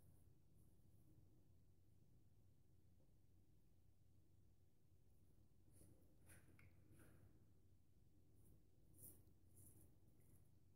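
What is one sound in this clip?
A razor scrapes softly over stubble in short strokes.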